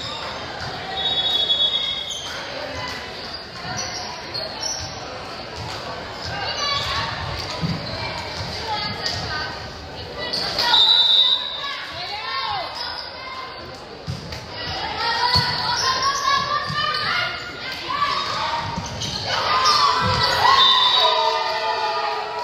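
Sneakers squeak sharply on the gym floor.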